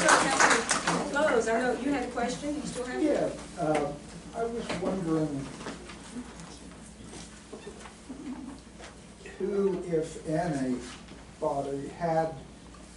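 A woman speaks to a group, heard from across the room.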